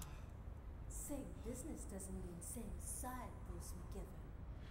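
A woman speaks coldly and quietly.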